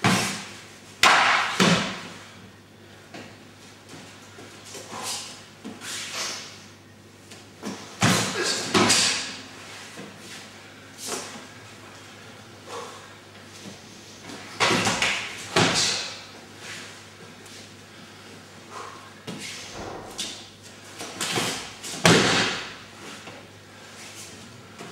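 Feet shuffle and slap on the floor.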